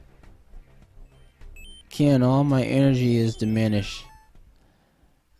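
A video game plays short, bright electronic chimes.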